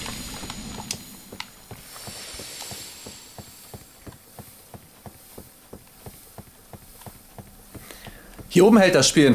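Footsteps clunk rhythmically on ladder rungs as someone climbs.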